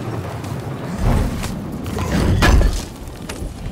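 A heavy lid bursts open with a loud whoosh of fire.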